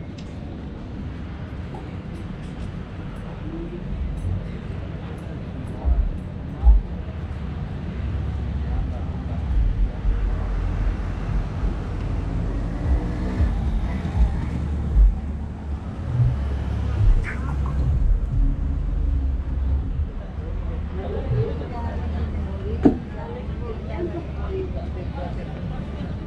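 Wind rumbles outdoors on a street.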